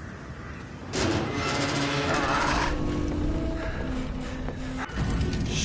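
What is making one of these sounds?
A heavy wooden gate creaks open.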